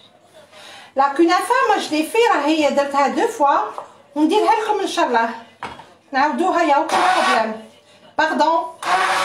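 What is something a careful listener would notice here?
A hand blender whirs in a pot of soup.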